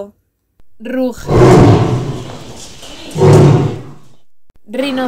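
A leopard roars.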